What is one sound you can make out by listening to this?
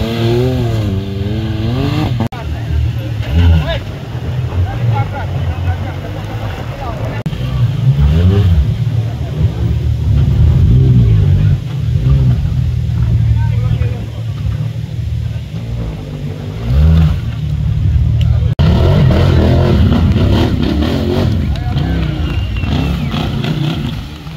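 An off-road buggy engine roars and revs hard.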